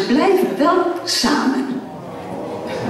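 A choir of women finishes singing in an echoing hall.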